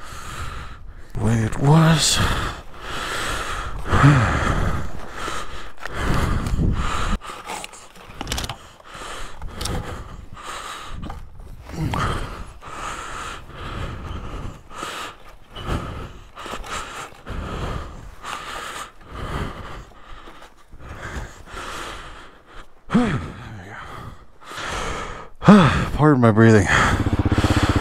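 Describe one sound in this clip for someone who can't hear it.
Wind blows across open ground and buffets the microphone.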